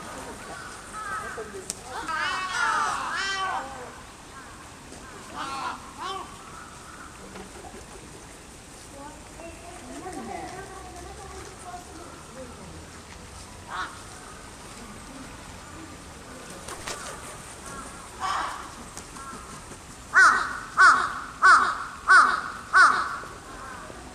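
Crows caw loudly in a series of harsh calls.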